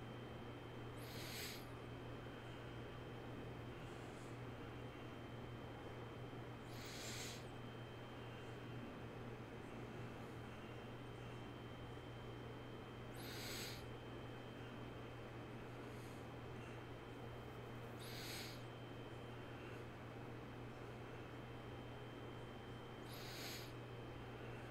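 A man breathes deeply and slowly near a microphone.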